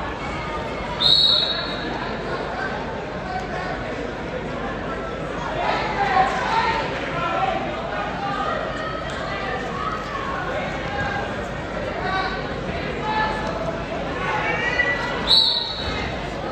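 A whistle blows sharply.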